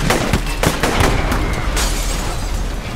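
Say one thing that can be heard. Sharp blasts and hits sound in quick succession.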